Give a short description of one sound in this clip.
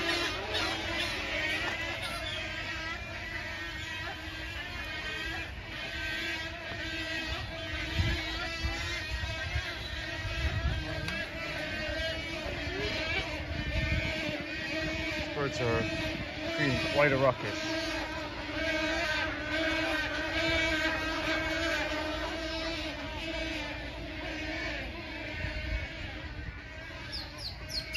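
A large colony of birds squawks and chatters continuously nearby.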